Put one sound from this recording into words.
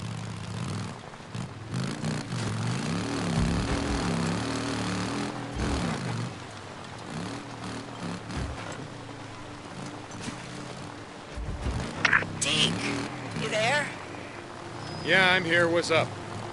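A motorcycle engine rumbles and revs up and down.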